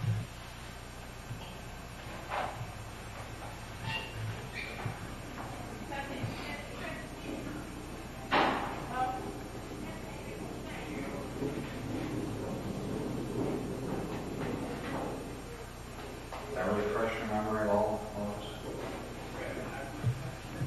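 A man asks questions calmly from close by.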